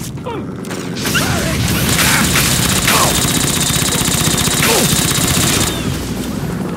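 A laser gun fires rapid crackling bursts.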